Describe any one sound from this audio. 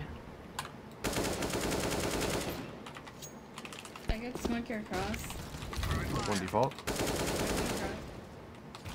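Rapid bursts of rifle fire crack out at close range.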